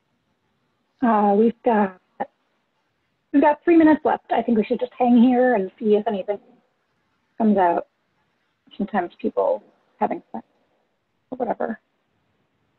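A young woman talks calmly over an online call, in short phrases with pauses.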